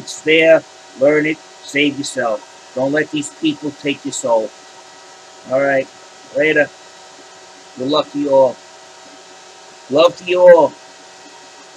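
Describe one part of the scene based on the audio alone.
A man speaks calmly and close to a microphone, in short bursts with pauses.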